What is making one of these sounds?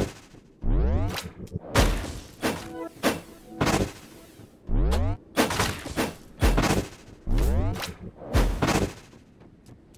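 Magic blasts whoosh and boom in quick bursts.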